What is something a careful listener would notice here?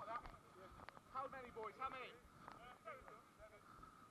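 A man shouts loudly nearby, outdoors.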